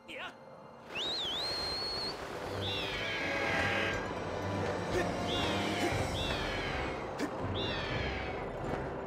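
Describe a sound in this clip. A large bird cries with shrill, falling calls.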